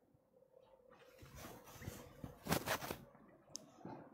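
Clothing rustles and brushes against a microphone close by.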